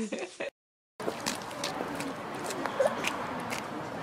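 A small child's footsteps patter on wet pavement.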